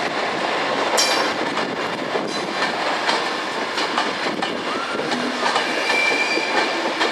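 Train wheels click and squeal on the rails.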